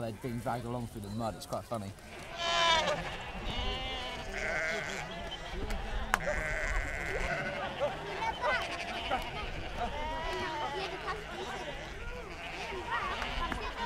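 Many sheep bleat loudly all around.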